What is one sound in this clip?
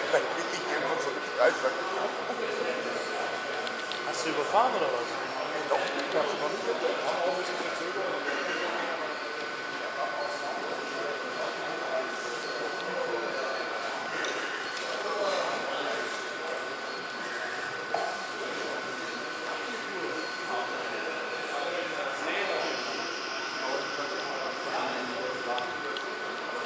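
A small model train motor hums steadily as it rolls along the track.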